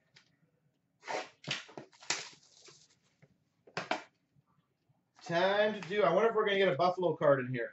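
Cardboard boxes tap and rustle as hands handle them.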